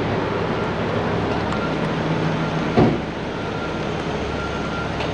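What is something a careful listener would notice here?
Footsteps splash on a wet road.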